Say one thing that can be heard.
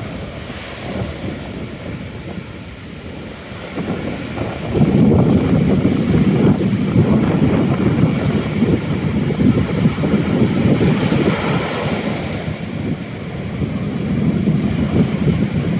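Ocean waves break and wash onto the shore nearby.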